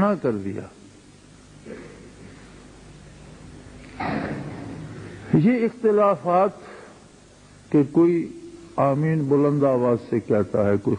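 An elderly man speaks slowly and earnestly into a microphone, with pauses.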